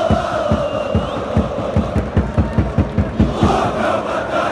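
A crowd claps in a fast, steady rhythm.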